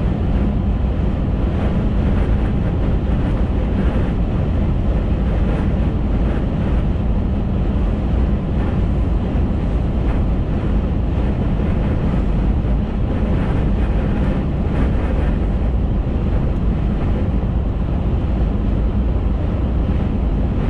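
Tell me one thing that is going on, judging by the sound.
A car engine hums steadily from inside the cabin.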